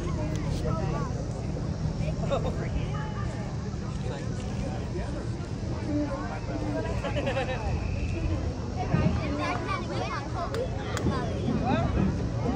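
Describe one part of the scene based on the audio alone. A crowd of people chatters outdoors in the distance.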